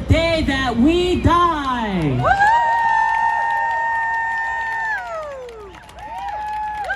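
A young man sings loudly into a microphone outdoors, holding long, sliding notes.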